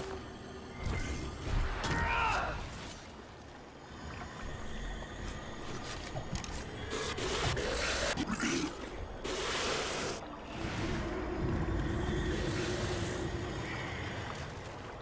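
A large creature roars and growls.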